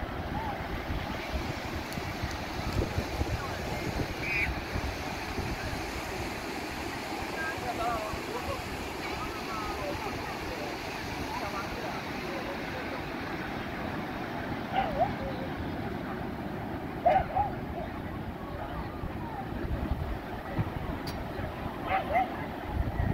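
Children shout and laugh in a distant crowd of beachgoers.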